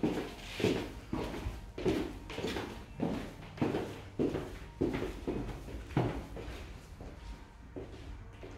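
Footsteps walk briskly along a hard floor.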